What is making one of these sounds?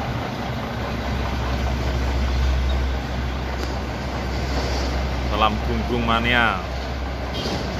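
A truck engine revs up briefly.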